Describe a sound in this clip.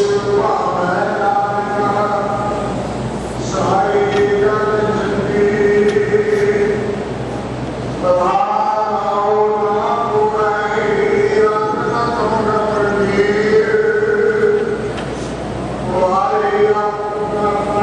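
A large group of men chant together in unison, in an echoing room.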